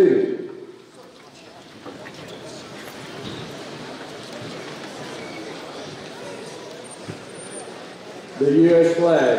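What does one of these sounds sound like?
A crowd murmurs quietly.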